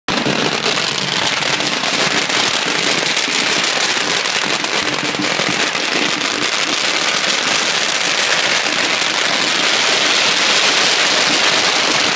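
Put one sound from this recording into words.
Firecrackers crackle and pop in a rapid, continuous burst close by, outdoors.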